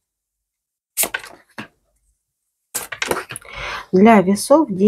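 Playing cards tap softly as they are laid down on a cloth.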